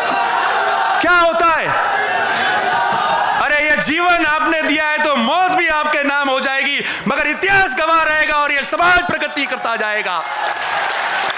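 A young man sings loudly and with passion through a microphone and loudspeakers.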